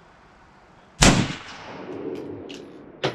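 A rifle fires a loud shot outdoors, echoing away.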